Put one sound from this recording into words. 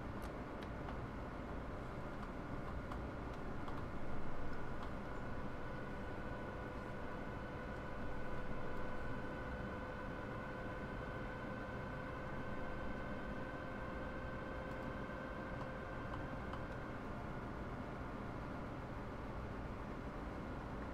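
An electric train motor hums with a steady whine.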